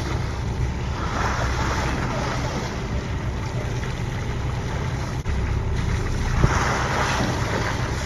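A dolphin splashes as it breaks the surface of the water.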